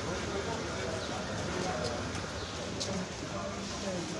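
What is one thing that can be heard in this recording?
A brush sweeps across a cement step.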